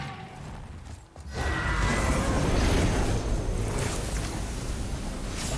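Footsteps crunch on grass and stone.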